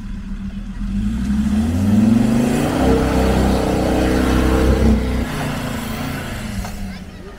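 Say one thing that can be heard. Tyres splash through muddy water.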